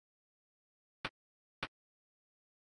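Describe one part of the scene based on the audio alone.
Short clicks sound as a game menu changes.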